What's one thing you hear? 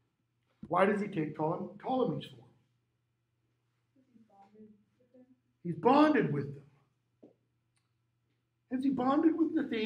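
A middle-aged man speaks with animation through a face mask, close by.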